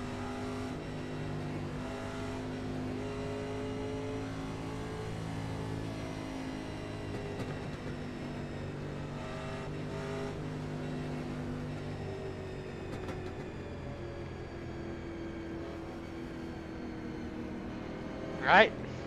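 A race car engine drones steadily at a moderate pace, its pitch drifting slowly.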